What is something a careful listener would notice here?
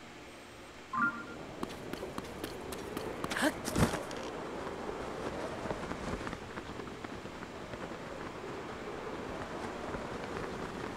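Wind rushes steadily past a figure gliding through the air.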